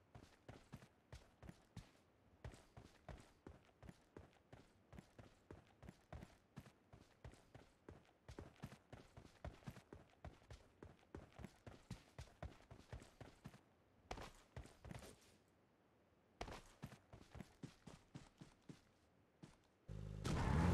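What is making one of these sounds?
Footsteps crunch quickly over grass and dirt.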